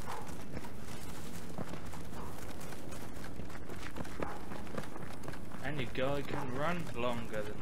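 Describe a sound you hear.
Footsteps crunch steadily along a dirt path.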